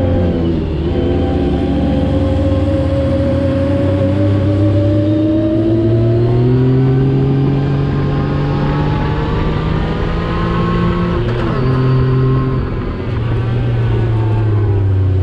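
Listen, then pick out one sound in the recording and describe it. A buggy engine roars up close, rising and falling in pitch as it changes gear.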